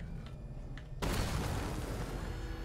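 A loud crash bursts out.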